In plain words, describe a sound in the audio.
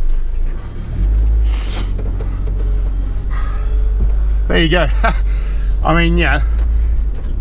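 A van engine starts and rumbles steadily.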